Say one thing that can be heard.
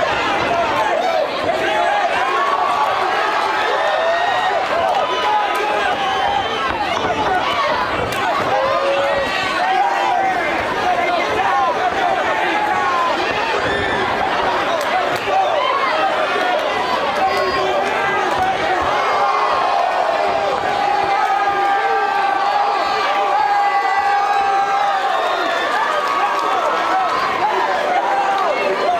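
A large crowd shouts and cheers in an echoing hall.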